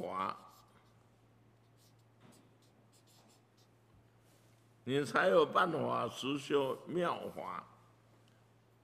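A felt-tip marker squeaks across paper.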